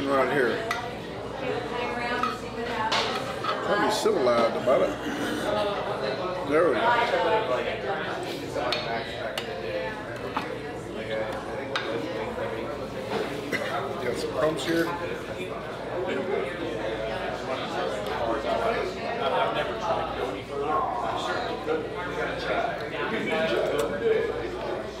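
A knife and fork scrape and clink on a metal plate.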